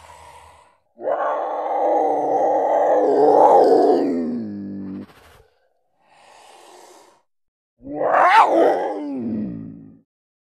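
A man speaks in a deep, calm voice, close up.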